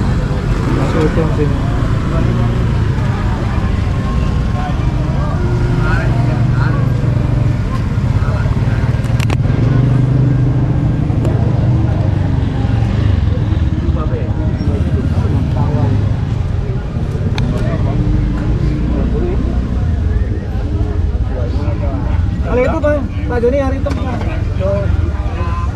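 Voices chatter in a busy outdoor crowd.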